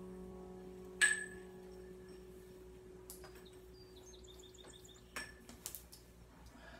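A yo-yo clacks sharply against its string.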